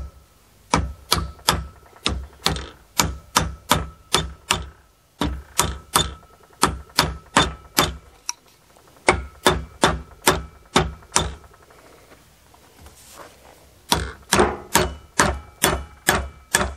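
A mallet knocks sharply on a wooden block in quick, steady blows, with pauses between bursts.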